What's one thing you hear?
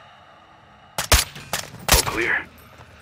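A rifle fires two sharp shots.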